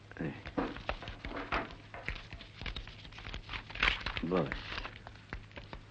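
Papers and magazines rustle as they are handled.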